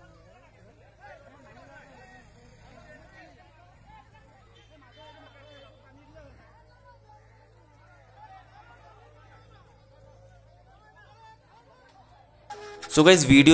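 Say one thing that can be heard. A crowd of people murmur and talk at a distance outdoors.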